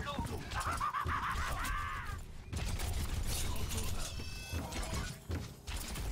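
Gunfire from a video game crackles in rapid bursts.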